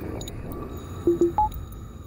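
Short electronic beeps chime.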